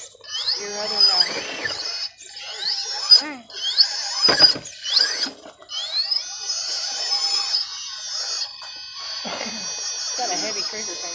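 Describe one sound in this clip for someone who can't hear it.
Rubber tyres scrape and grip on rock.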